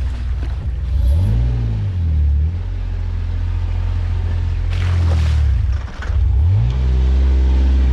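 An off-road vehicle's engine rumbles and revs up and down.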